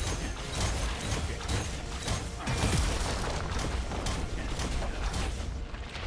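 Video game spells and blows burst and crackle in quick succession.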